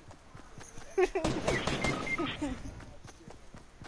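An explosion booms loudly and crackles.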